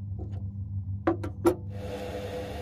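Metal clicks sharply a few times as a lathe chuck is tightened.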